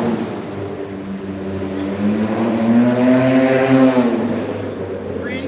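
A group of men chant together in a low, sustained drone outdoors.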